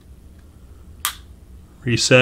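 A pistol's mechanism gives a sharp metallic click.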